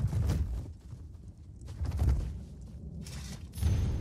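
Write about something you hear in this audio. Weapons strike and clash in a fight.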